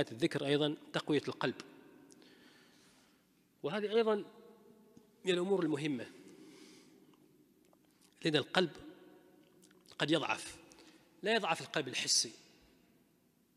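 A middle-aged man speaks calmly into a microphone in short phrases, with pauses between them.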